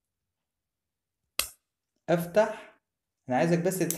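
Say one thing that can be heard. A needle holder's ratchet clicks shut.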